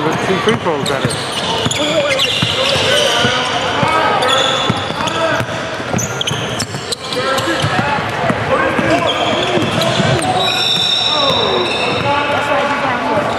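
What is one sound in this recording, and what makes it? Many people talk and call out at once in a large echoing hall.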